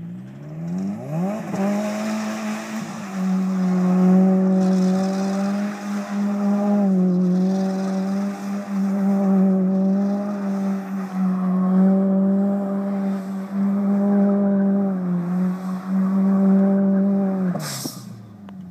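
A car engine revs hard and holds at high revs.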